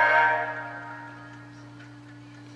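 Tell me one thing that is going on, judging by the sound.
A computer plays a short chime that fades away.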